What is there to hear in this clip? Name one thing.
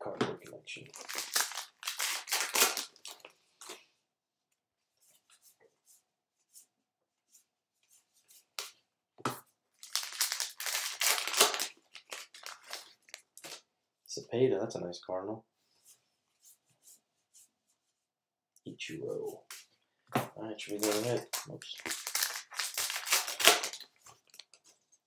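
A foil wrapper crinkles and tears as a card pack is ripped open.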